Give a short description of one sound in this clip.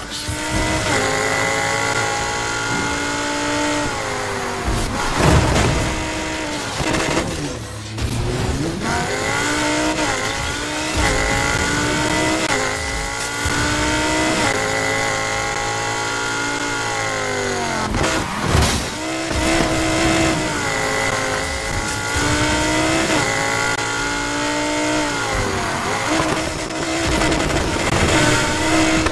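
A race car engine roars and revs up and down through gear changes.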